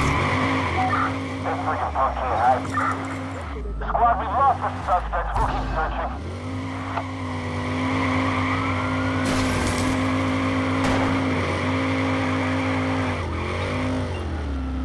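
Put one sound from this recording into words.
A car engine roars steadily as the car drives.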